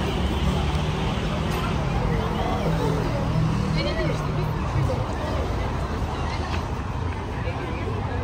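A crowd of men and women chatter nearby in a busy street outdoors.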